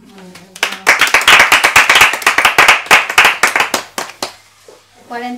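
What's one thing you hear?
Several women clap their hands in brisk applause.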